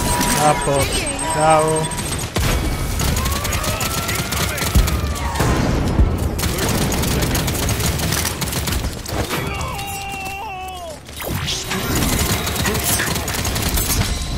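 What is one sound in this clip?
Gunfire and blasts from a video game go off rapidly.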